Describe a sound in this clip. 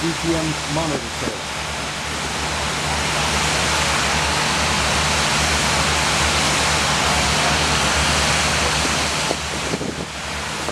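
A powerful water jet roars and hisses steadily.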